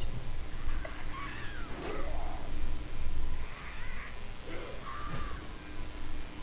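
A creature screeches and squawks during a fight.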